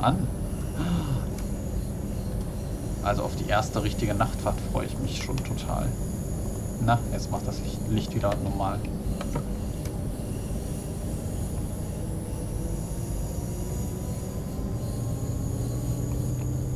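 A diesel multiple unit rumbles as it rolls along rails.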